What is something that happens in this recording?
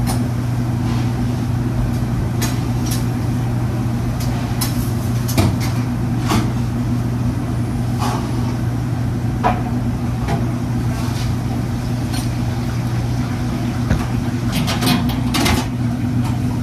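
Utensils and containers clatter and knock.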